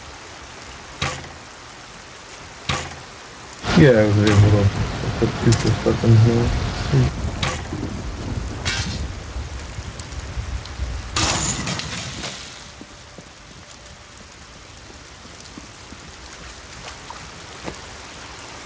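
Short sharp clicks sound now and then.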